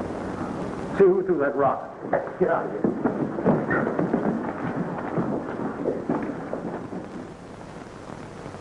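Several men talk and argue at once.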